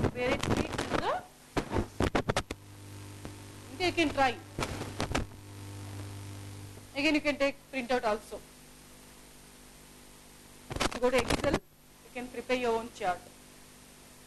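A young woman speaks calmly and clearly close by.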